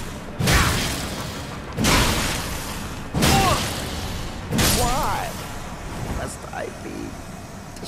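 A heavy sword swings and slashes repeatedly.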